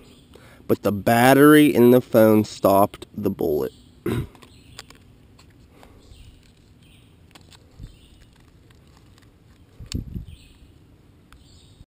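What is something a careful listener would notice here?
Plastic packaging crinkles and clicks in someone's hands.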